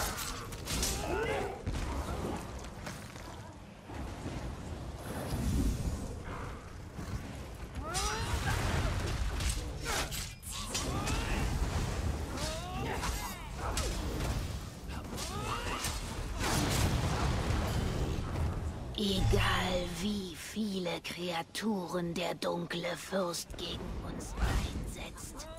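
Magic spells crackle and boom in a fight.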